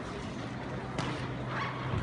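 A body thuds onto a mat.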